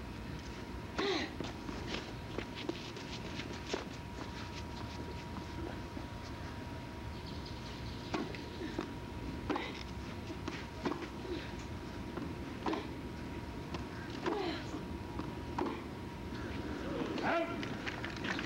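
A tennis ball is struck back and forth with sharp pops of a racket.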